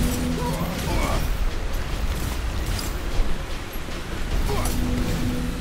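Magic blasts whoosh and burst.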